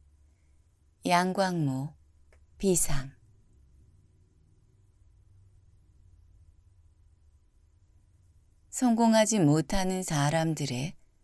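A man reads aloud calmly and slowly, close to a microphone.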